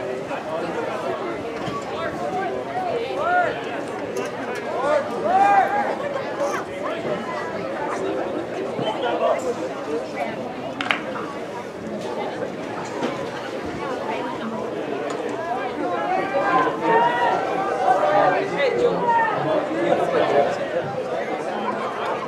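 A crowd of spectators chatters and cheers nearby, outdoors.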